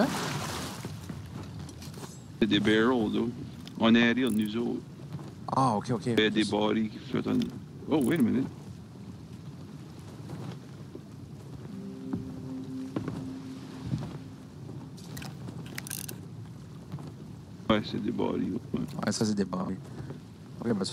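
Waves wash softly against a wooden ship's hull.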